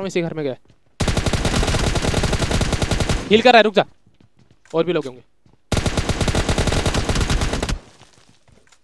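An assault rifle fires in rapid automatic bursts.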